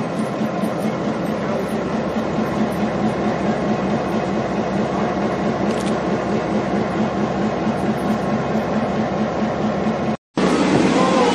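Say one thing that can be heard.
A diesel locomotive engine idles with a steady, low throb.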